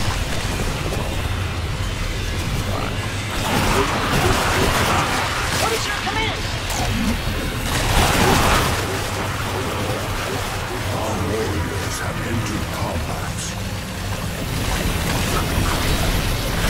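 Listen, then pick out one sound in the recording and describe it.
Game battle sounds of gunfire and explosions rattle and boom.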